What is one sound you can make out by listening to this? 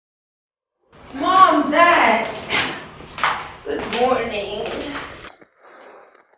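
A young woman calls out a greeting with animation.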